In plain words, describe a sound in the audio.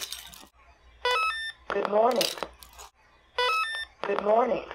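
A small electronic buzzer beeps a short rising tune.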